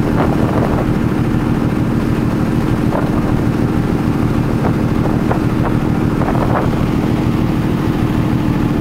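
A ferry's engine drones with a low hum.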